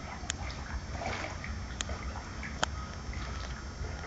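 Water drips and splashes as a dog climbs out of the water.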